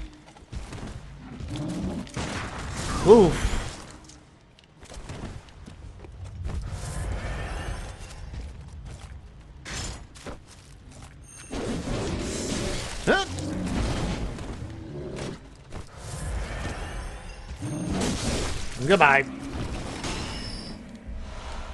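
Heavy blades swing and strike with loud whooshes and thuds.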